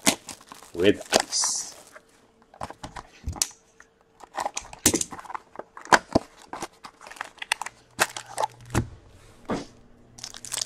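Hands tear open a cardboard box with sharp taps and scrapes.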